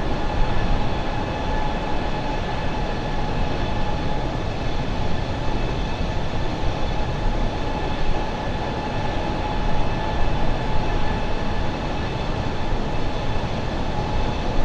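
Jet engines roar steadily with a constant high whine.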